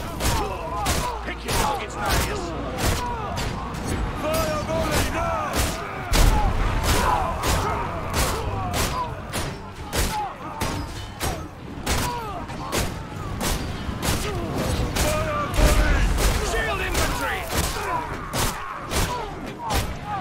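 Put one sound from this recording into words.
A heavy bolt thrower fires rapidly again and again, each shot a sharp crack.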